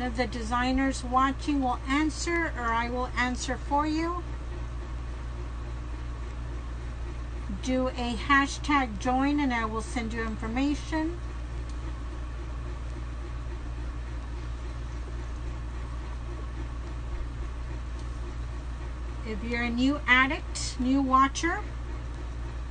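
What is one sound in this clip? A middle-aged woman talks calmly close by, in short bursts.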